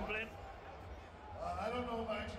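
A man speaks through a loudspeaker in an arena.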